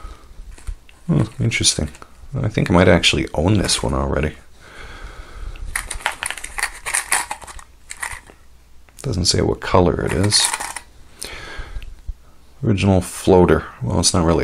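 Stiff plastic packaging crinkles and rustles as it is handled.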